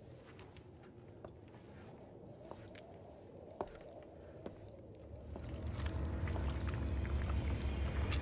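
Footsteps tap slowly on a stone floor.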